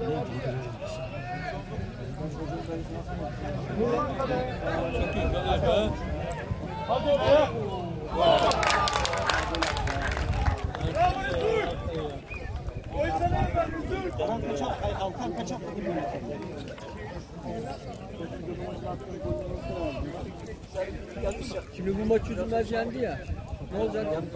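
Young men shout and call to each other across an open outdoor field.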